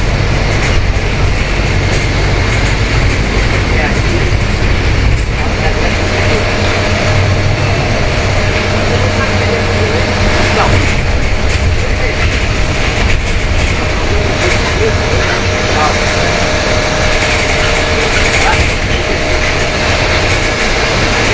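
A bus engine hums and drones steadily.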